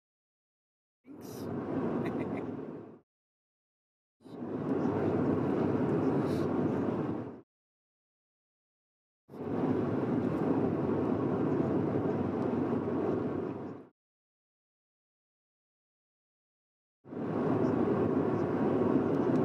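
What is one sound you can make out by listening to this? Tyres roll steadily on a smooth road with a low rumble.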